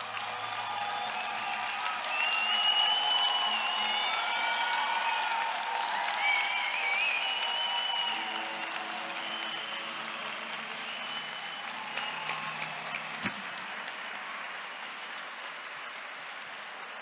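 A large crowd applauds and cheers in an echoing hall.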